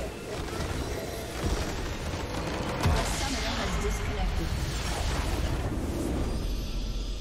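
A large crystal explodes with a booming burst in a video game.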